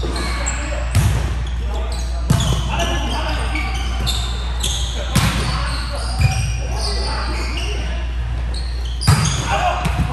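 A volleyball is hit with sharp slaps, echoing in a large hall.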